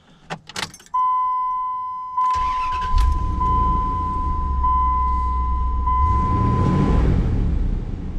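A warning chime beeps steadily in a car.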